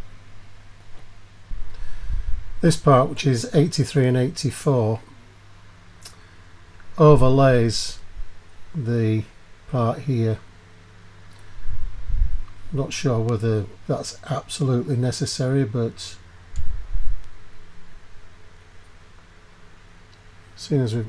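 Small metal parts click and rattle softly as hands handle them.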